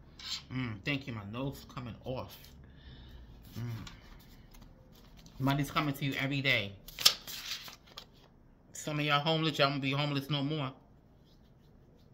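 Paper cards rustle and flick as they are handled.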